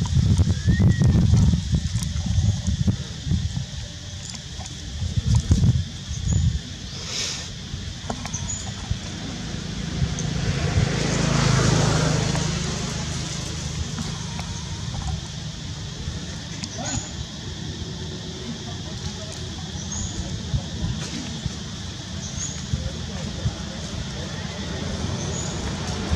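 A baby monkey squeaks softly.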